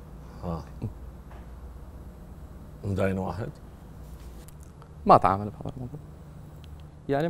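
A young man speaks in short phrases through a microphone.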